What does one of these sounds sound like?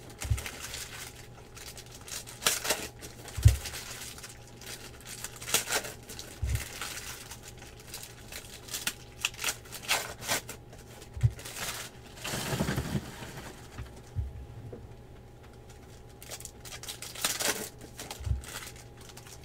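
Card packs thump softly on a table.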